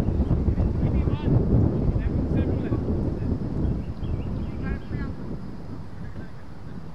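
Men call out to each other in the distance, outdoors.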